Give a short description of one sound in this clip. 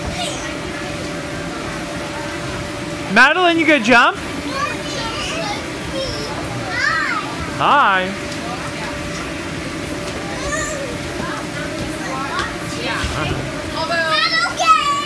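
Young children shout and squeal close by.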